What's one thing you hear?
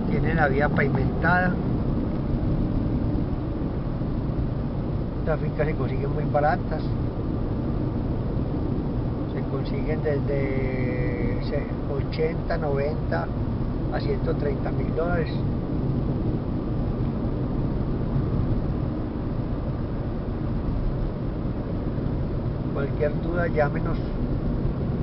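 A car engine hums and tyres roll steadily on the road.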